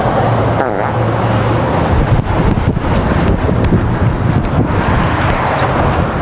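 Traffic rumbles steadily along a busy street outdoors.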